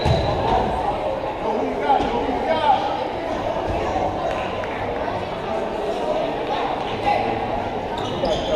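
A crowd chatters throughout a large echoing gym.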